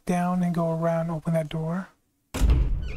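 A wooden door creaks slowly open.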